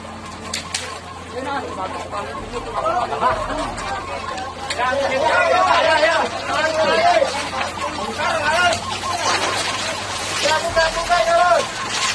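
Water hisses from a fire hose.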